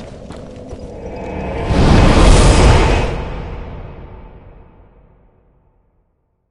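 A deep whooshing rush swells and then slowly fades away.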